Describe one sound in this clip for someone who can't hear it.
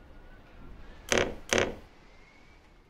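Wooden cabinet doors creak and knock open.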